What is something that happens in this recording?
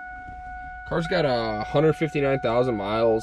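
A car engine cranks and starts up.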